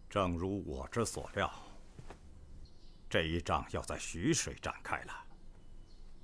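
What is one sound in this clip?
A man speaks firmly to a room.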